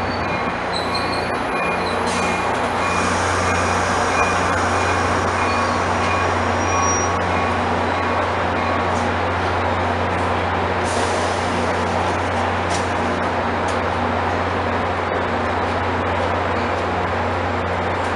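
A stopped train's engine rumbles and hums steadily nearby.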